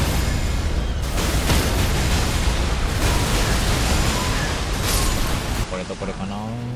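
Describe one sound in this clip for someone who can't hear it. Magical blasts roar and crackle loudly.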